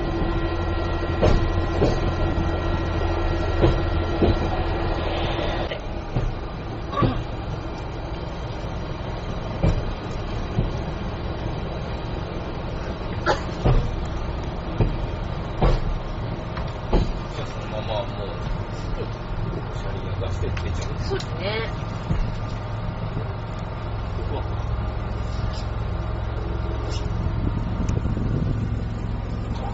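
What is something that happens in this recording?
An engine hums steadily inside a moving vehicle.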